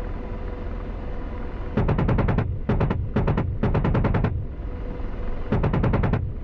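A helicopter engine and rotor hum steadily.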